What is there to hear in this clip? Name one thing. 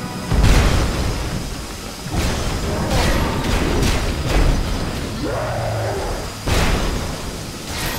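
A laser beam crackles and buzzes.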